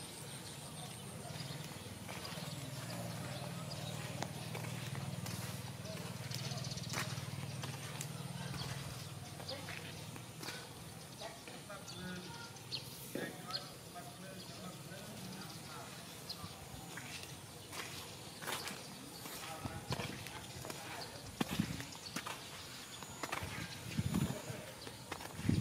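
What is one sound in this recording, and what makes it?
A dog sniffs along the ground.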